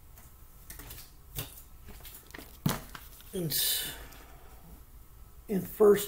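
Pages of a book rustle.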